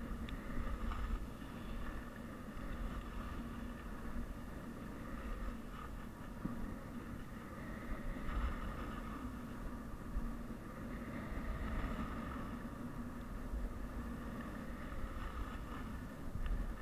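Skis scrape and hiss steadily over packed snow.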